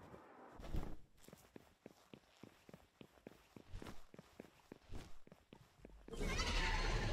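Footsteps crunch quickly on rock.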